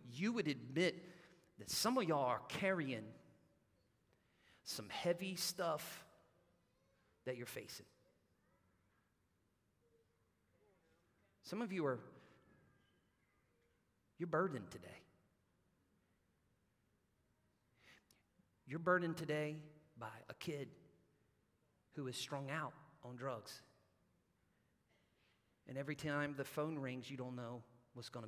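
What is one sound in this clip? A man speaks through a microphone in bursts with long pauses, in a large echoing hall.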